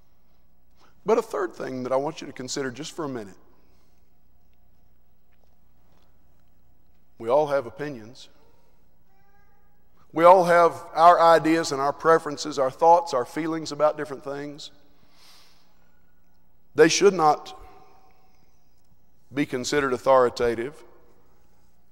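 A man preaches through a microphone in a large hall, speaking in bursts with pauses.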